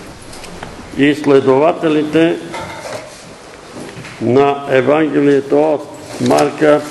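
An elderly man reads out aloud in a room with a slight echo.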